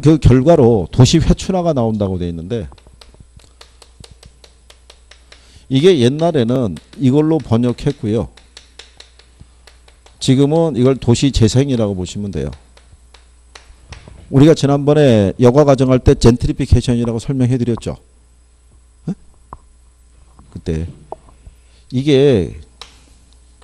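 A middle-aged man lectures with animation through a microphone, in bursts with pauses.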